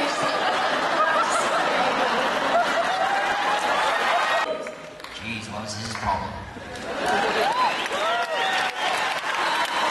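A man speaks loudly on a stage, heard from afar in a large hall.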